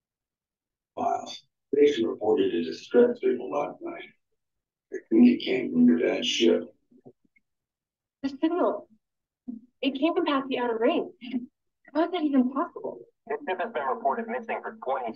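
A man speaks calmly through a microphone, heard over an online call.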